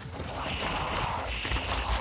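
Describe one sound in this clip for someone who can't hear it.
A fire crackles and roars close by.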